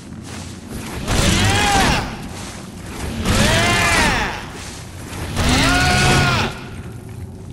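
Heavy mechanical platforms grind and whir as they turn.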